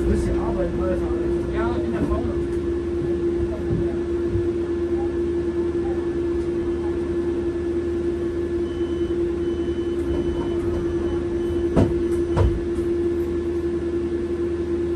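A bus engine hums steadily while idling.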